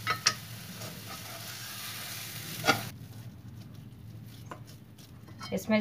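A metal spatula scrapes and knocks against a pan.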